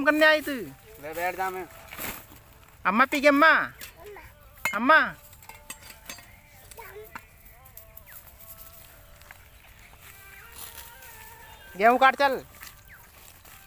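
A toddler babbles and calls out loudly close by.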